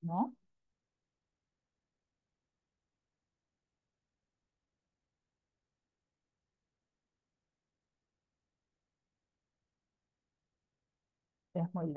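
A woman speaks calmly over an online call, in short bursts.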